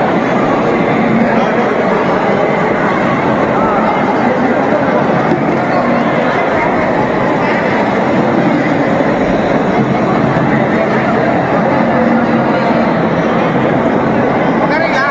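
A large crowd of men and women chatters loudly in a big echoing hall.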